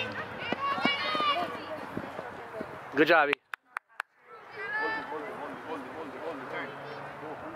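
Young children shout and call out across an open field.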